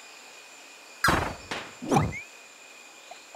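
A block breaks apart with a crashing burst effect in a video game.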